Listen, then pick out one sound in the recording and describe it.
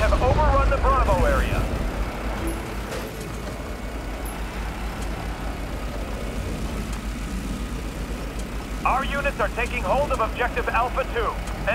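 A mounted machine gun fires rapid bursts.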